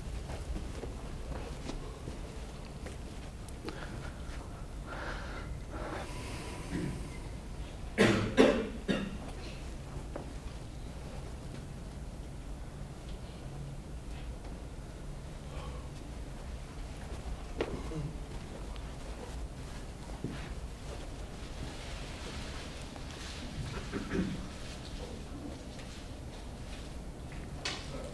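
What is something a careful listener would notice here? A man lectures in a large room, heard from a distance with some echo.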